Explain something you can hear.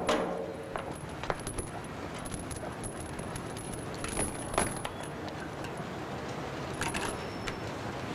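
Metal parts of a bicycle click and clank as it is handled.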